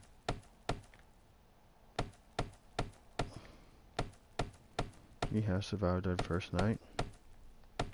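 A hammer strikes wood in a quick, repeated series of sharp knocks.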